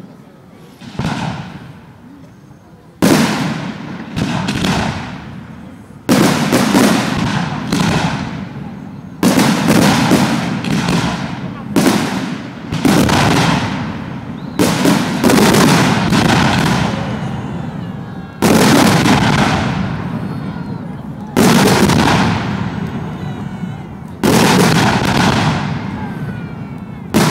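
Fireworks burst with loud booms that echo away.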